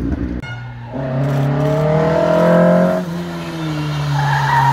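A car engine drones steadily as a car climbs a winding road.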